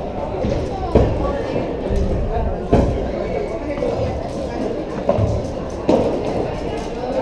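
Players' shoes squeak on the court.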